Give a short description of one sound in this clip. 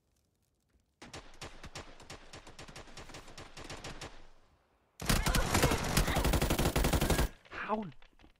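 Rapid gunfire bursts out in loud, fast volleys.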